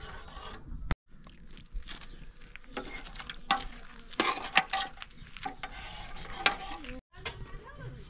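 A metal ladle scrapes and clinks against a cooking pot.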